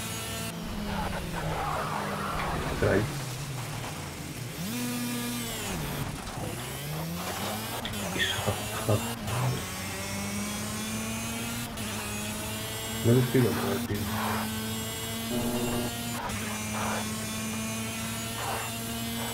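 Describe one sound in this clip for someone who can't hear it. A kart engine buzzes loudly, revving up and down as it shifts gears.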